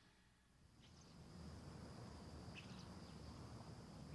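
A bird flaps its wings as it takes off from a branch.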